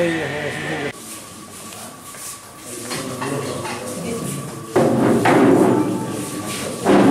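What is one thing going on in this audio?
Several men talk quietly in a room.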